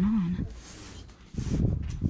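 A hand pats a soft cushion.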